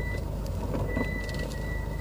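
A gear lever clicks as it is moved.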